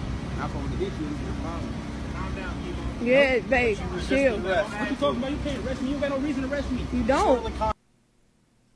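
A man shouts and cries out in distress nearby.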